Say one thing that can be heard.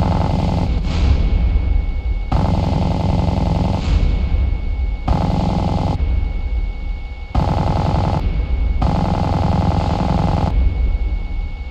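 A jet engine roars steadily close by.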